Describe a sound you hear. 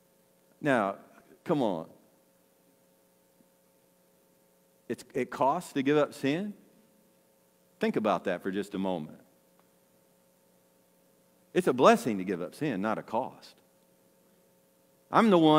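An older man speaks calmly through a microphone.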